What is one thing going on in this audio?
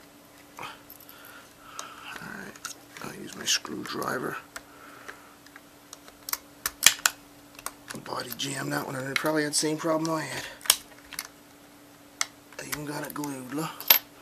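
Small tools click and tap against a plastic casing.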